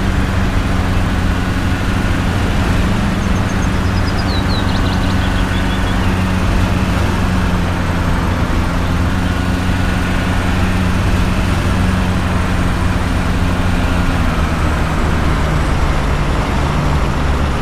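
A diesel engine hums steadily as a heavy vehicle drives along.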